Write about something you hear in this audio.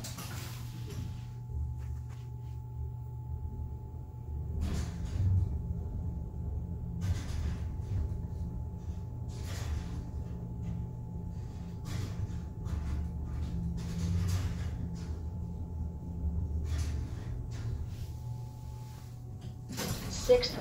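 An elevator car hums steadily as it rises.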